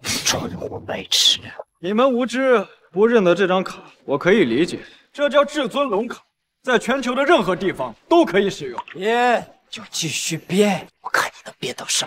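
A second young man speaks calmly and confidently close by.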